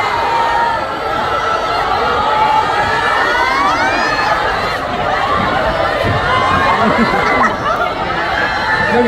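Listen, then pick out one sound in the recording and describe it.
A crowd of young women screams and cheers.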